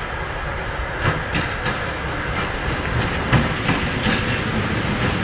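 Wheels of a diesel shunting locomotive click over rail joints.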